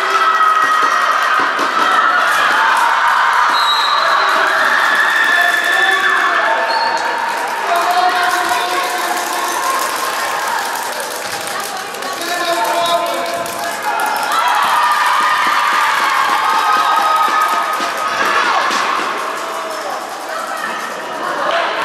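Young girls shout and call out across the hall.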